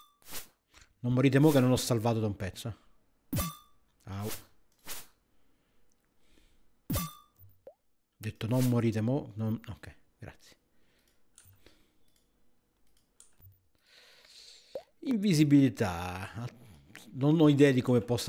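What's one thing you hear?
A man speaks with animation close to a microphone.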